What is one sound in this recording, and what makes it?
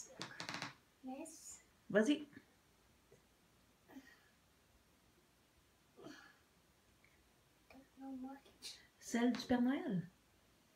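A small boy speaks in short bursts close by.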